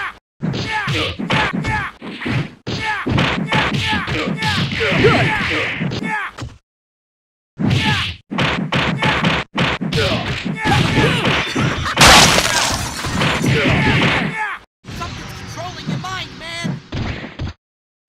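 Punches and kicks land with sharp, rapid hits.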